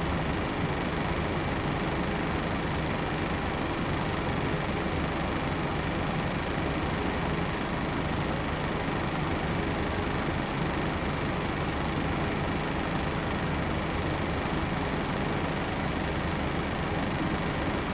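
Jet engines hum steadily in a cockpit.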